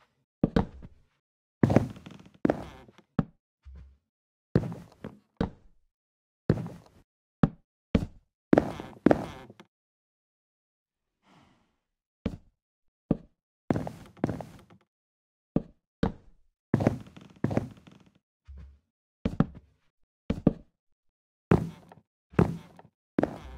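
Wooden blocks are placed and broken with short, dull knocks, again and again.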